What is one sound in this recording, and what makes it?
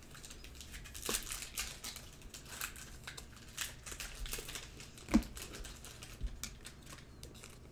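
A foil wrapper crinkles and tears as a pack of cards is opened.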